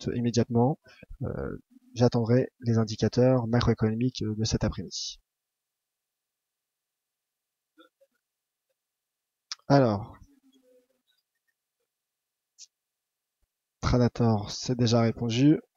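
A young man speaks calmly and clearly into a close microphone, with pauses.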